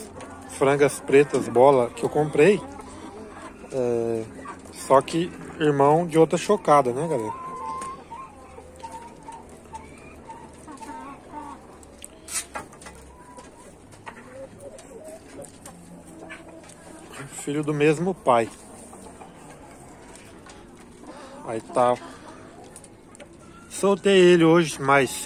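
A rooster clucks softly nearby.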